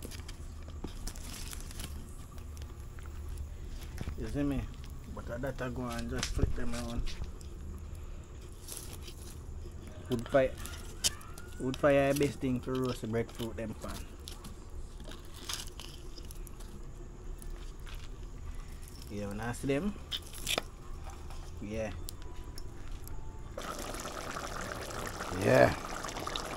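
Burning charcoal crackles softly.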